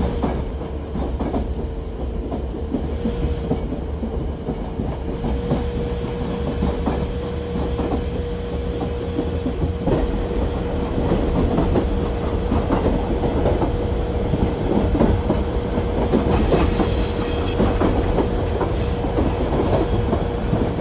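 Train wheels clatter over rails.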